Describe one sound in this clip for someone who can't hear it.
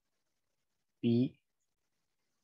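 A man speaks a short word calmly into a microphone.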